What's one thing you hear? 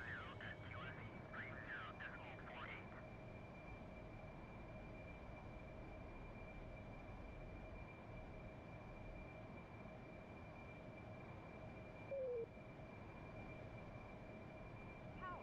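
The turbofan of a Harrier jump jet whines as the jet rolls down a runway.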